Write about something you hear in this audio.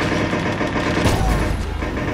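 A gunshot rings out.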